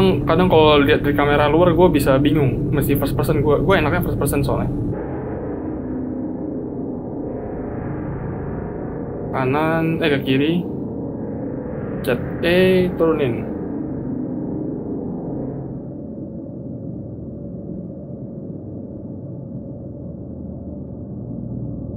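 A spacecraft engine hums low and steadily.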